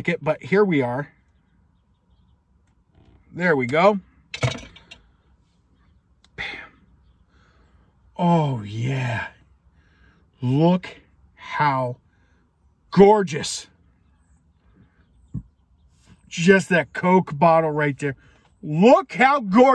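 A man talks calmly and close by, with pauses.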